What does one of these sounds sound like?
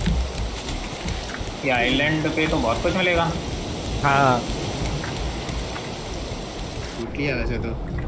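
Waves wash gently against a shore.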